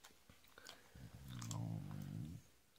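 A dog growls low and close by.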